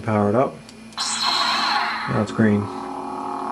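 A toy lightsaber switches on with a sharp crackling surge.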